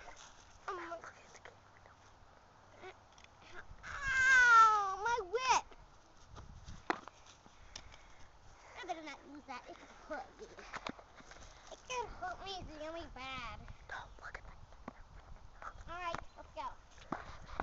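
A young boy talks playfully close by.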